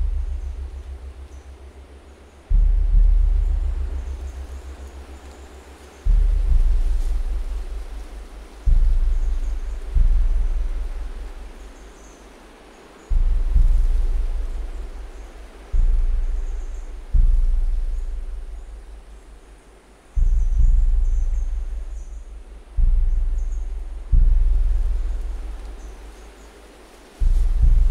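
Leafy branches rustle and swish as a tree is shaken.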